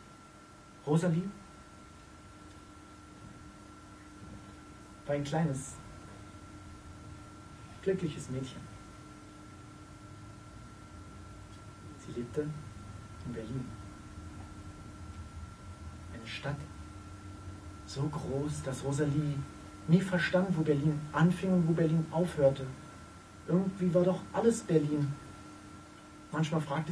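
A man speaks slowly with long pauses, in a room with a slight echo.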